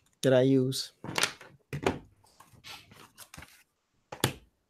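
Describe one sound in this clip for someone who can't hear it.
Paper rustles and slides across a table.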